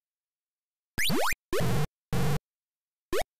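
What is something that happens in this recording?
A harsh electronic buzzing burst sounds from an old computer game.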